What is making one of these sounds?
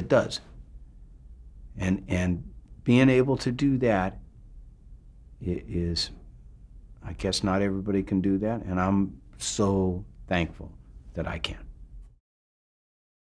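A middle-aged man speaks calmly and thoughtfully, close to a microphone.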